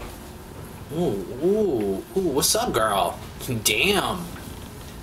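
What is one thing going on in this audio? A man speaks calmly and clearly.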